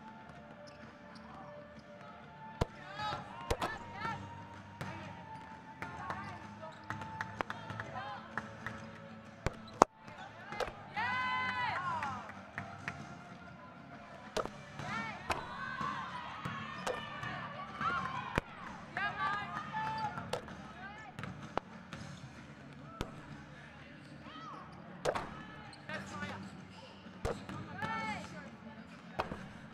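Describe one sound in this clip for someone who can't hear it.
Basketballs bounce with sharp thuds in a large echoing hall.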